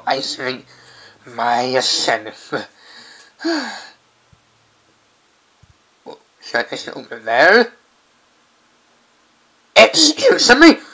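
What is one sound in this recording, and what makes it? A man speaks in a lively, cartoonish voice, close to a microphone.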